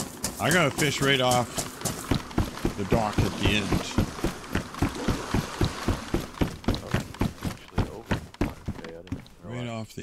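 Footsteps thud on a wooden pier.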